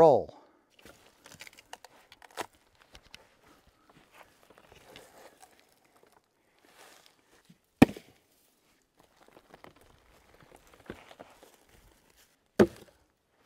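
Footsteps crunch on dry forest litter.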